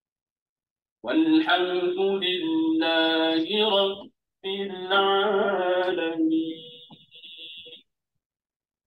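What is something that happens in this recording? An elderly man chants in a drawn-out voice close to a microphone.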